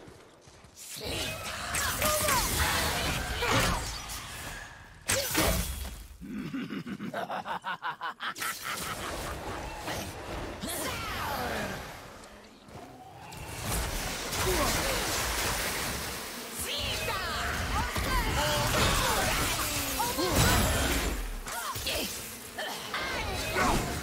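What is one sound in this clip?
An axe swings and strikes with heavy thuds.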